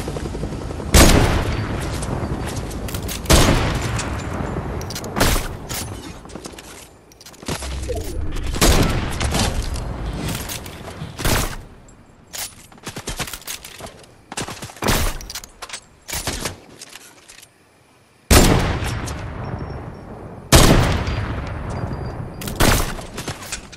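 A sniper rifle fires loud single shots with echoing booms.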